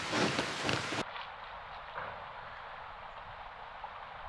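A river flows gently.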